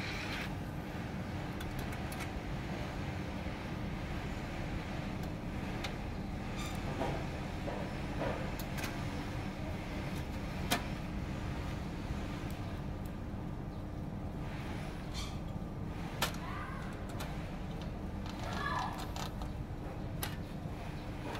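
Plastic and metal parts click and knock as hands handle a printer.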